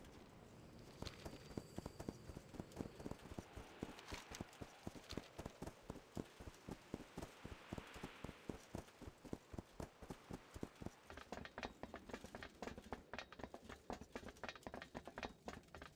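Footsteps thud steadily on the ground and on wooden planks.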